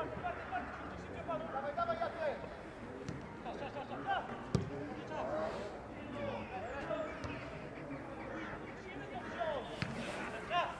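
Players shout and call to each other across an open outdoor pitch.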